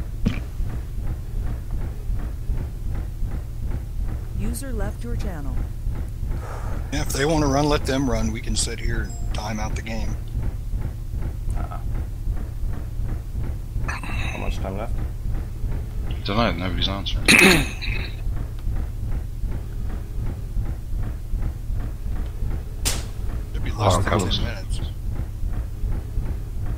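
A walking mech's engine hums low as it moves over the ground.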